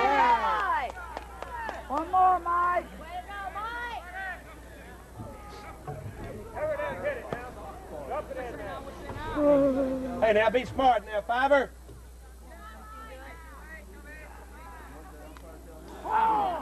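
Men shout and call out loudly across an open field.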